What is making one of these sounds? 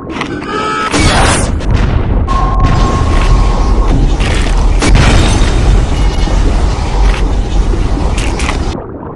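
A torpedo explodes underwater with a deep boom.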